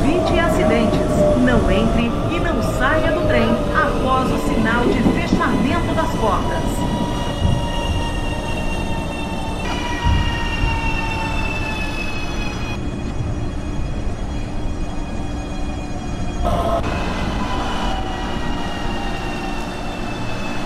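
Wheels of an electric train rumble on the rails.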